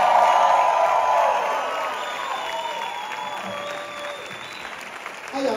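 An audience cheers and whistles in a large hall.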